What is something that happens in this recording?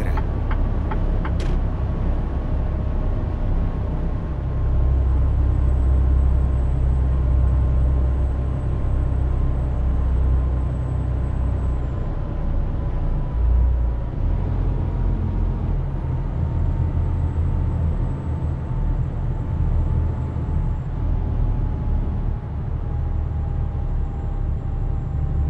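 A truck engine rumbles steadily while driving.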